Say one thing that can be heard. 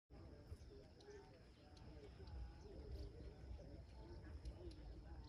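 Tall leaves rustle softly in the breeze.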